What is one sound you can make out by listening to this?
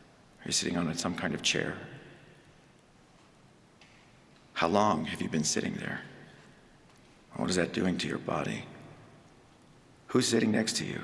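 A man speaks calmly into a microphone in short phrases, with a slight room echo.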